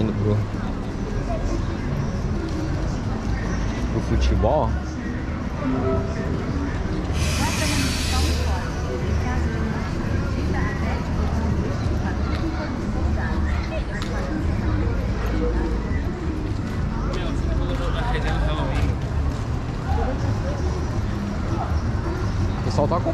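Footsteps scuff on paving stones close by.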